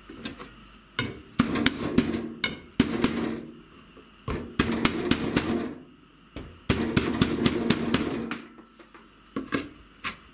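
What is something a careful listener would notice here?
A knife chops on a wooden board with loud, hard knocks.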